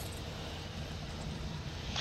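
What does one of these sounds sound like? Small fires crackle softly.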